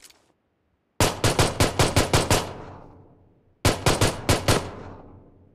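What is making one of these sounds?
A pistol fires in quick bursts of shots, echoing off into the distance.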